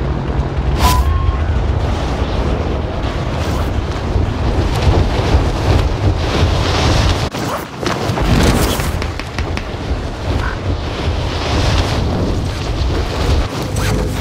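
Strong wind rushes past steadily during a freefall.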